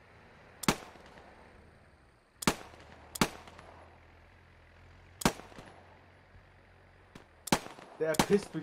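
Gunshots crack sharply now and then, some far off.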